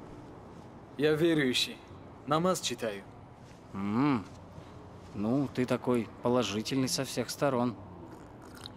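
A second man speaks casually in reply.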